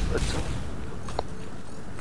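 Flames burst with a roar.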